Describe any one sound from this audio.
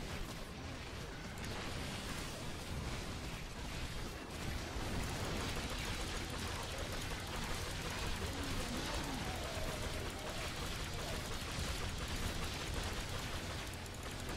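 Magic blasts and weapon hits clash in a fight.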